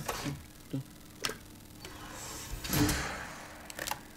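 A metal canister clunks down onto a wooden desk.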